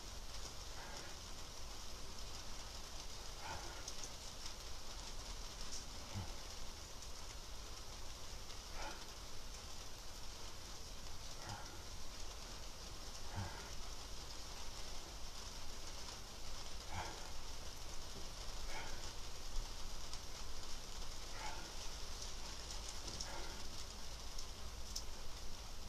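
A young woman breathes out hard in a steady, repeating rhythm.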